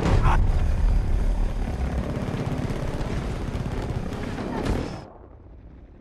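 Explosions roar and debris clatters as a plane breaks apart.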